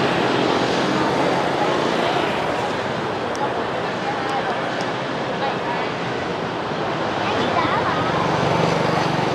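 Motorbike engines hum and buzz steadily along a busy street outdoors.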